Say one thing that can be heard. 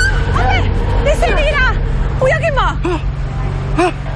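A middle-aged man cries out in surprise, close by.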